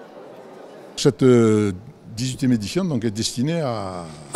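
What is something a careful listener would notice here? An elderly man speaks calmly into microphones up close.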